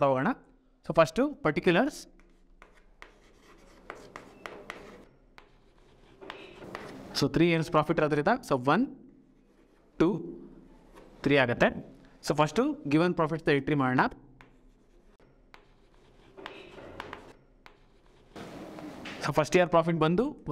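A young man explains calmly, with pauses.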